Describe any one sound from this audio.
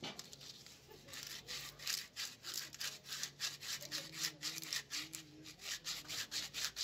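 A wooden handle scrapes and knocks rapidly as it is forced into an axe head.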